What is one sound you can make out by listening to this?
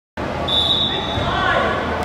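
A referee's whistle blows a short shrill blast.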